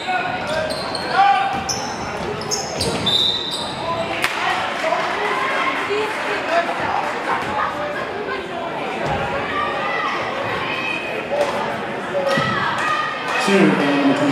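A crowd chatters and cheers in an echoing gym.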